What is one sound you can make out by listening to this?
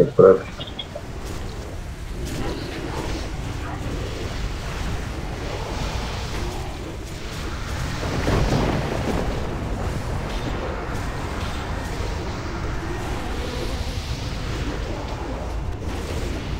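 Magic blasts and battle effects crackle and roar steadily.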